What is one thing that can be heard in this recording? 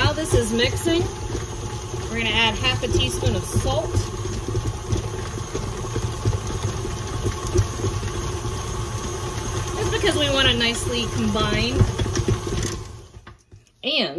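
A stand mixer whirs steadily, then stops.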